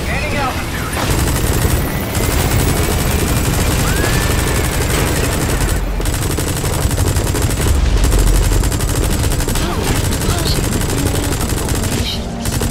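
A heavy mounted gun fires in rapid, continuous bursts.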